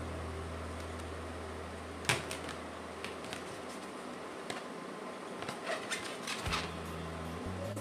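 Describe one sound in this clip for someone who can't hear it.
A balloon squeaks as hands rub it.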